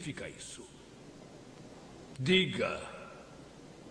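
A man speaks briefly and calmly.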